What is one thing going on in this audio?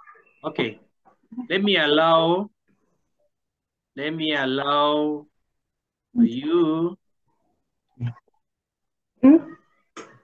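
A man speaks with drawn-out, sing-song words through an online call.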